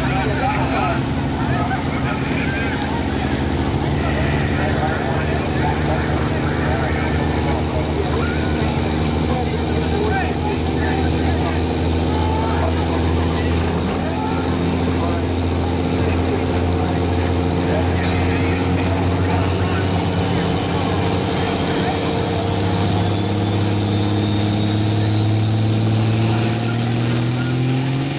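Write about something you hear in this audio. A turbo whines high and climbs in pitch.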